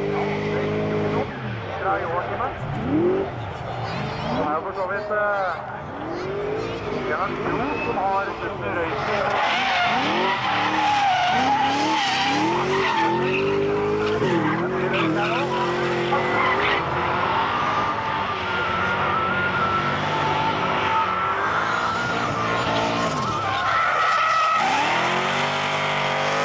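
A car engine revs hard and loud, rising and falling in pitch as the car drifts.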